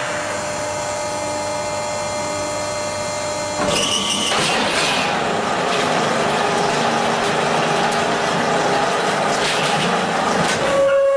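A large machine hums steadily.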